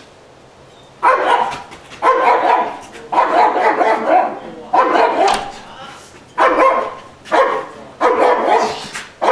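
A large dog barks loudly and repeatedly behind a glass door.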